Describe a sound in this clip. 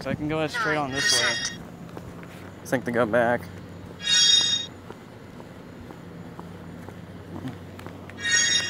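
Short electronic chimes ring out in bright bursts.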